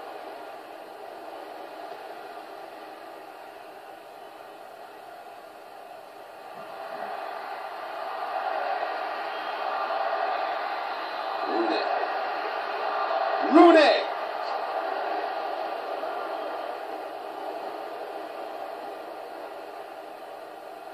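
Video game crowd noise plays through a television speaker, swelling and then slowly fading.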